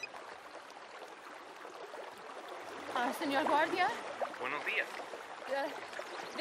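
A stream trickles gently outdoors.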